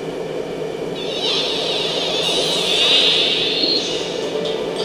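A shimmering electronic whoosh sweeps through as the game changes scenes.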